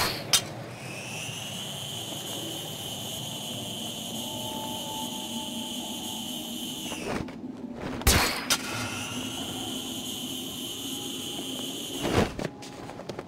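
A wire hums and whines steadily as a figure slides along it.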